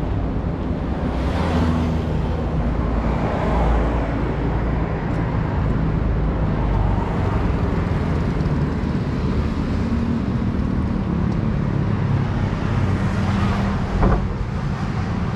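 Cars pass close by with a rushing sound.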